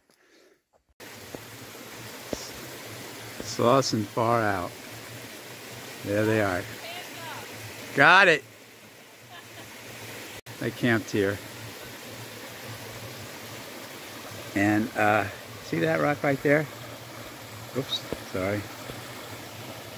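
A small stream splashes and gurgles over rocks.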